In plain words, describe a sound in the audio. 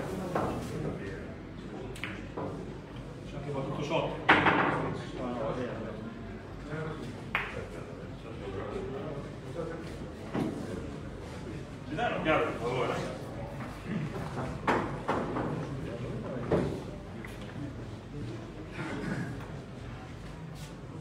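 Several men talk quietly in the background.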